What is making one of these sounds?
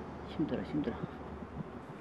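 A metal tool scrapes against a rubber tyre.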